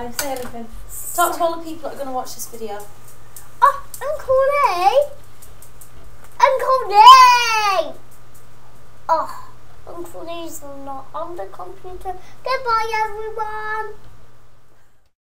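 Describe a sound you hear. A young boy talks and squeals playfully close by.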